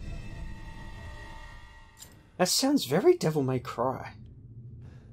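A metal key clinks as it is picked up.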